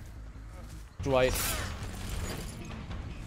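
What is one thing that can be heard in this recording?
A blade strikes a body with a heavy thud.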